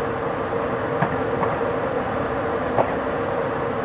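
Wheels clack over rail joints now and then.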